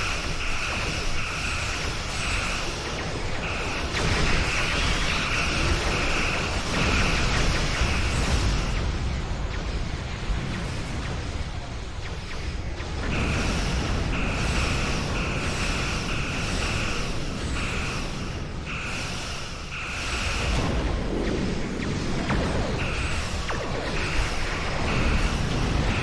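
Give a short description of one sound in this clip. Energy weapons fire with a steady, rumbling roar.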